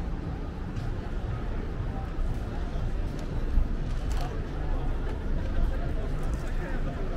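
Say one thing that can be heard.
People chatter in a crowd nearby.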